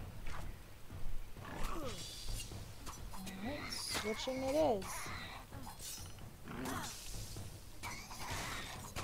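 Blades clash in a fast fight.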